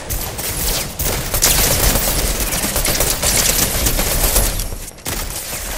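Rapid gunshots crack loudly.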